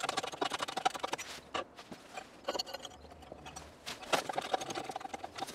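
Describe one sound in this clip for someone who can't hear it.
A thin metal sheet scrapes and clinks against a steel block close by.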